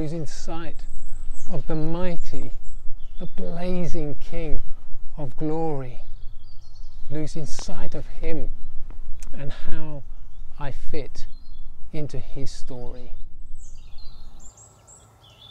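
A middle-aged man talks calmly and clearly, close to a microphone.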